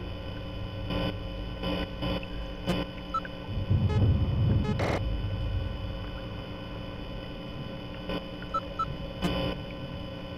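A button clicks several times.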